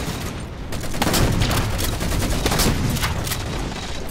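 Automatic gunfire rattles in rapid bursts.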